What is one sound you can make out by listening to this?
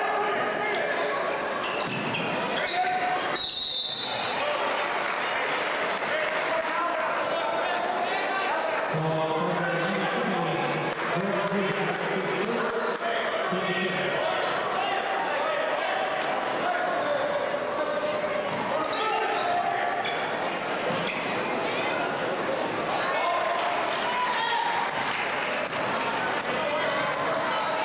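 A large crowd chatters and cheers, echoing through a big hall.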